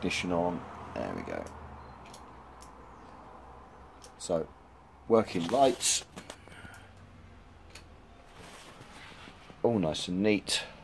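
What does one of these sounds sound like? A hard plastic lamp housing clicks and knocks as it is handled.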